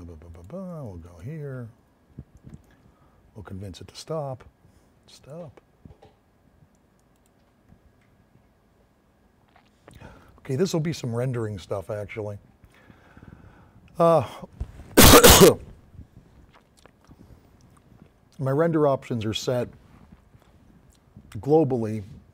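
A man talks calmly into a nearby microphone, in short bursts with pauses.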